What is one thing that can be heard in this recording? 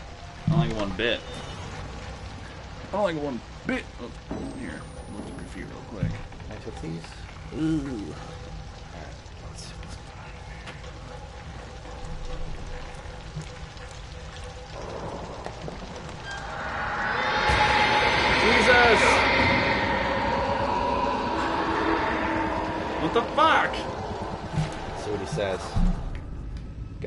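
A young man talks excitedly into a microphone.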